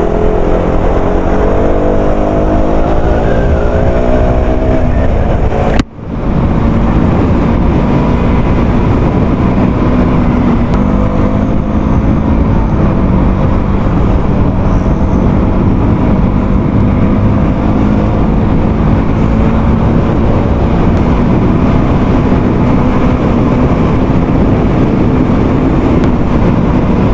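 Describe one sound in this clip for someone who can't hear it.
A motorcycle engine hums up close and rises in pitch as it speeds up.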